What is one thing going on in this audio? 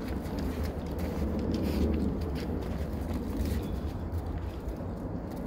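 A small dog's paws crunch in snow.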